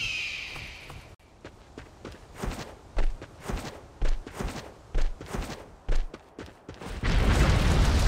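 Footsteps thud quickly on the ground.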